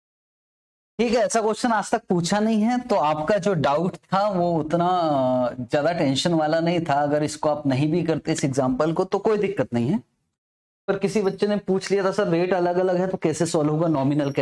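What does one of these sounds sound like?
A man speaks with animation close to a clip-on microphone, explaining steadily.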